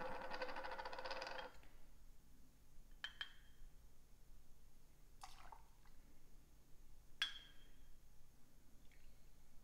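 Liquid pours from a bottle into a small metal measure.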